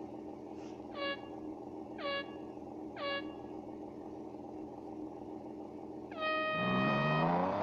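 Short electronic beeps sound as start lights count down.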